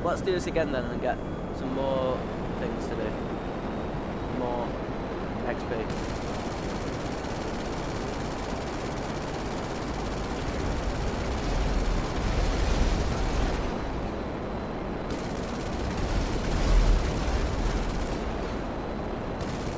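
A jet engine roars steadily, swelling now and then into a deep rumble.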